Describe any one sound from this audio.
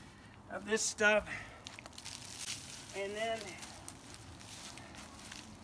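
Dry plant scraps rustle and crackle as they are handled.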